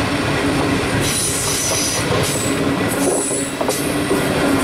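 Train wheels squeal on the rails.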